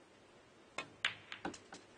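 Billiard balls click sharply together.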